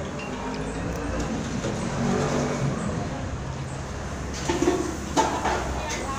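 A young woman chews and slurps food close by.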